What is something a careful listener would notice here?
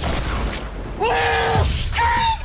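A triumphant musical fanfare plays.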